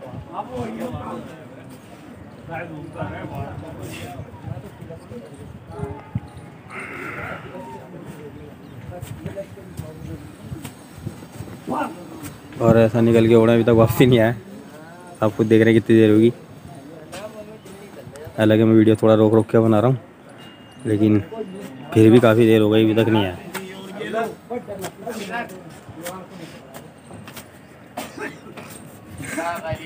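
A crowd of men talks and calls out nearby outdoors.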